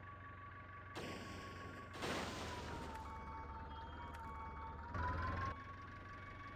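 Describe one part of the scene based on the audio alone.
A tractor crashes and scrapes through bushes.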